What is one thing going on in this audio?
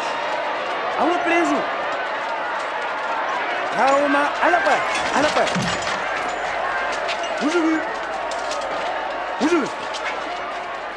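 Men shout and jeer loudly in the crowd.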